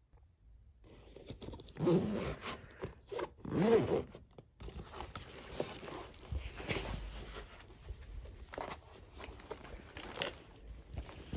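Fabric bags rustle and shuffle close by.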